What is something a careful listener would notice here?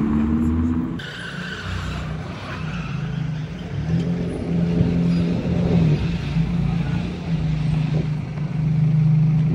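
A sports car engine rumbles as the car drives slowly closer.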